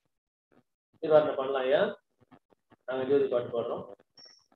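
A man speaks close to the microphone through an online call.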